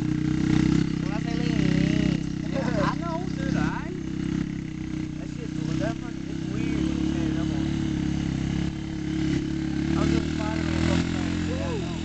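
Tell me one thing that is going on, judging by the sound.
A quad bike engine runs steadily nearby.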